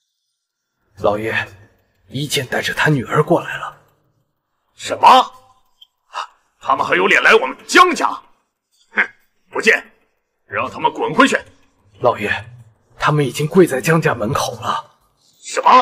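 A man speaks respectfully and urgently.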